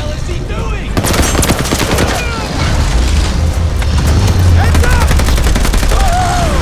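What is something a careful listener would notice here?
A rifle fires in rapid shots.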